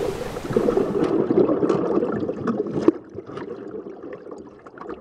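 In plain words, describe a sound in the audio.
Water churns and bubbles underwater.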